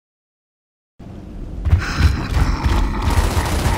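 Heavy boots thud on pavement.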